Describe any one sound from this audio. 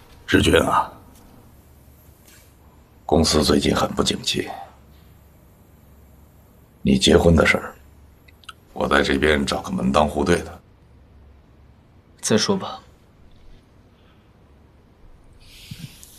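A young man speaks quietly in reply.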